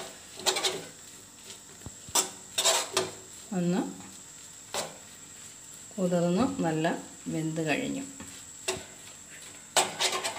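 A metal spatula scrapes and clinks against a pan while stirring.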